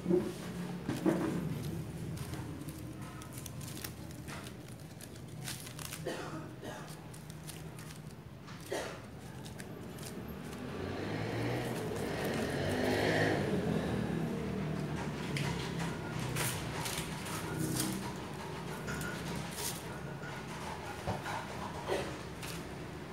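Foam fruit netting and paper leaves rustle and crinkle in hands.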